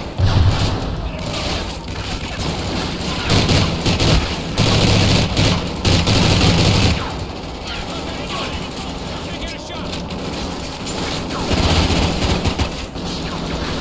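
Rifle gunfire bursts loudly in rapid shots.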